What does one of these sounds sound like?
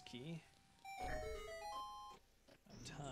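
A short run of electronic notes plays.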